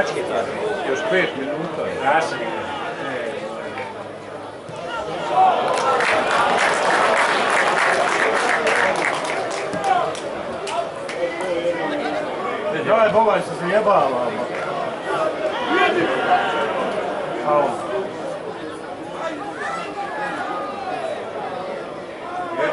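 A crowd of spectators chants and shouts outdoors, close by.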